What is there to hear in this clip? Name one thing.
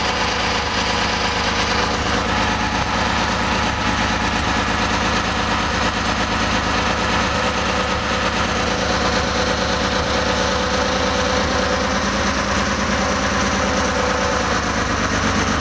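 An engine idles steadily with a rapid, even chugging.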